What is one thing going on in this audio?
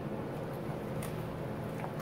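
A padded envelope crinkles and rustles.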